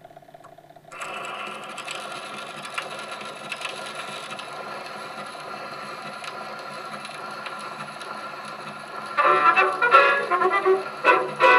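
An old gramophone record plays scratchy music with surface hiss.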